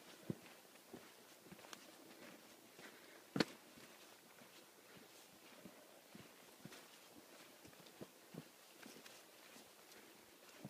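Footsteps crunch on dry leaves and stones along a trail.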